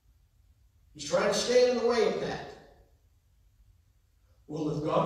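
A man speaks into a microphone over loudspeakers in a large echoing hall.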